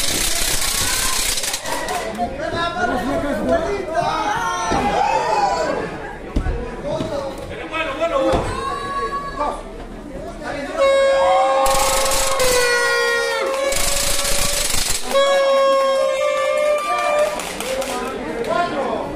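A crowd of people cheers and shouts outdoors.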